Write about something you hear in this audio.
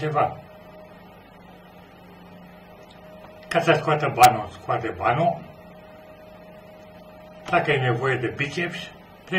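An elderly man speaks calmly and close up, in short bursts with pauses.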